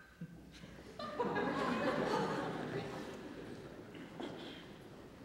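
A seated audience laughs.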